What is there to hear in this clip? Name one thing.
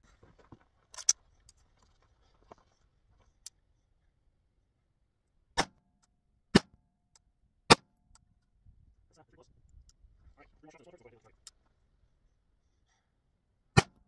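A rifle fires sharp, loud shots outdoors, one at a time with pauses between.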